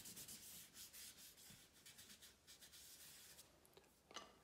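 A pencil scratches rapidly on paper.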